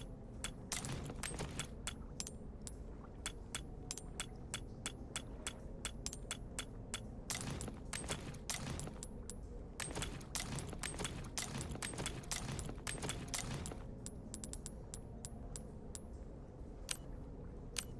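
Short menu clicks tick again and again.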